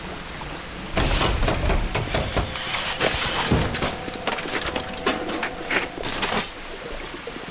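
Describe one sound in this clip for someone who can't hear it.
Bolts thud into their targets.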